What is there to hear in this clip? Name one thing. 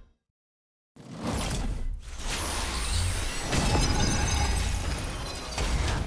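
Swords clash and blasts boom in a fast fight.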